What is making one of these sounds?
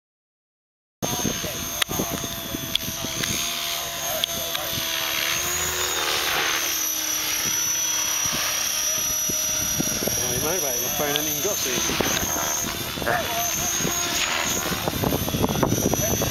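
A model helicopter's rotor whines and buzzes as it flies overhead, outdoors in wind.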